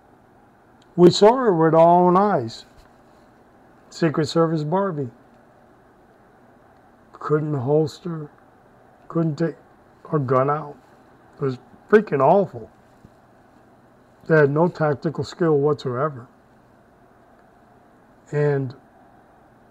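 A middle-aged man speaks calmly in short phrases, close to a microphone.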